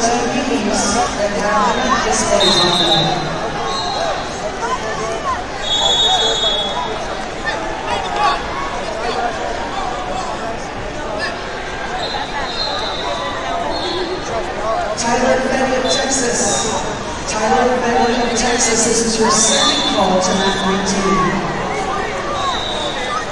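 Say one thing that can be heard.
Spectators shout encouragement loudly.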